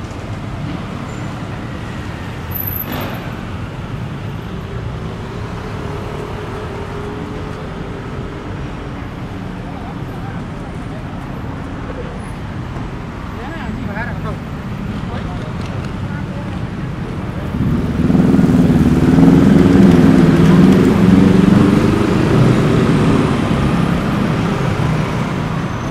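Traffic rumbles steadily along a street outdoors.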